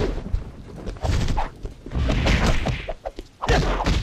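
A whip lashes and cracks through the air.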